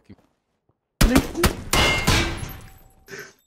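Gunshots fire at close range.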